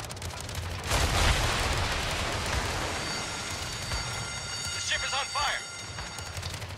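Heavy naval guns fire with deep booms.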